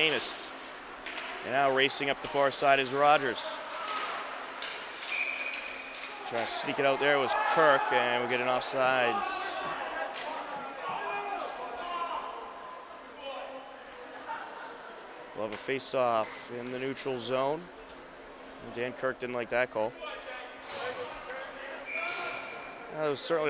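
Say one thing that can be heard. Ice skates scrape across an ice rink.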